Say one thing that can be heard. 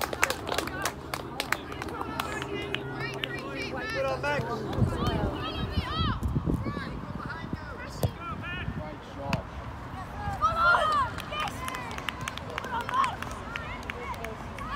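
Young boys shout and cheer outdoors.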